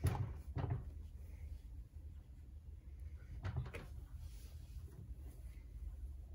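A washing machine hums low and steadily.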